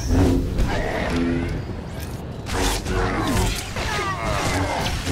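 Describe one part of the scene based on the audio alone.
A lightsaber swings with a humming whoosh.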